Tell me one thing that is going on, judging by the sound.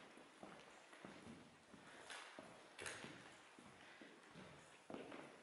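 Footsteps crunch on gritty debris in a large echoing hall.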